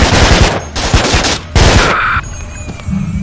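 Gunshots blast loudly in quick succession.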